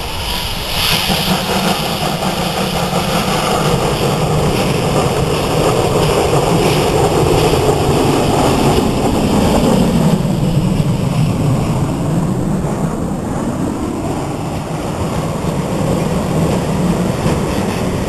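A steam locomotive chuffs loudly as it approaches and passes close by.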